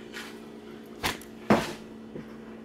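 A plastic container knocks down onto a hard counter.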